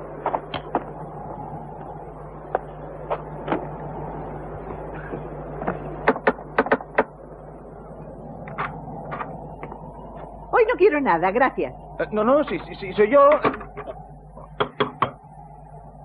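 Knocks rap on a wooden door.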